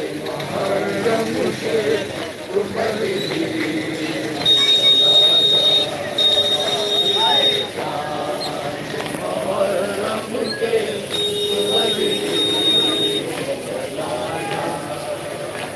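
A crowd of men chant together loudly outdoors.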